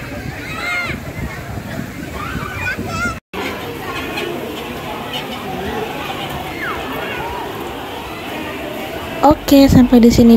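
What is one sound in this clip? Water splashes as people play in a pool.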